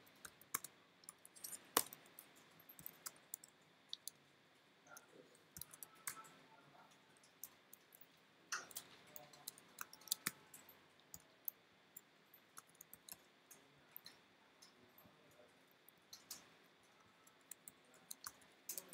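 Keyboard keys click in quick, uneven bursts.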